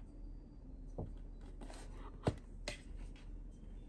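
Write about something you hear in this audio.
A stiff plastic sheet rustles and knocks onto a table.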